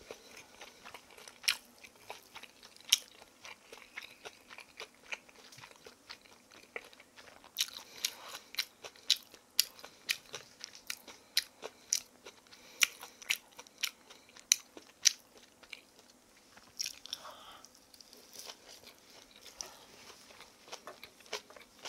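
A young woman chews food noisily close to a microphone.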